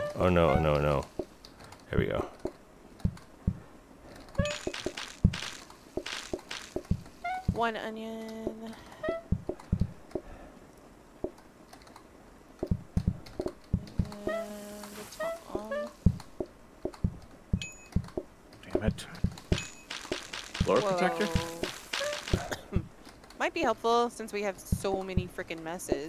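Short cheerful game chimes and pops ring out.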